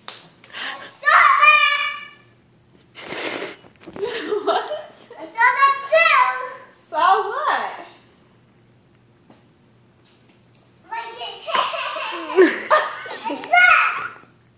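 A young girl speaks and sings in a high, lively voice close by.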